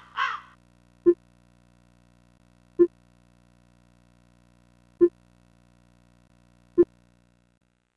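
Short soft blips sound one after another.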